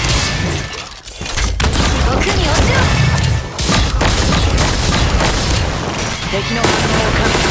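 Gunfire and energy blasts crackle rapidly.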